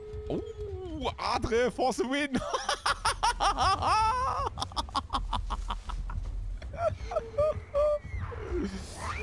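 A man laughs loudly into a close microphone.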